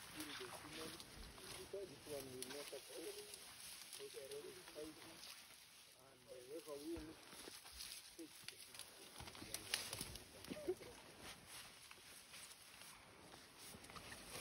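A gorilla rustles leaves close by while feeding.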